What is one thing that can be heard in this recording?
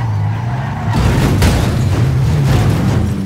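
A car crashes and tumbles with loud scraping and banging.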